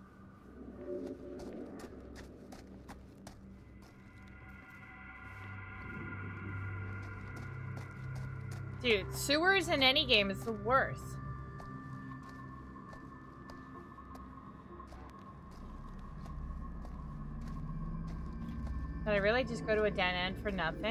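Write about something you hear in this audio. Footsteps echo.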